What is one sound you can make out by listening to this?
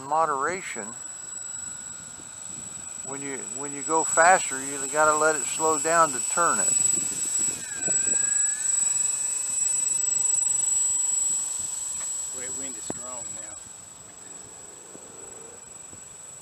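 A small model plane's electric motor whines steadily nearby.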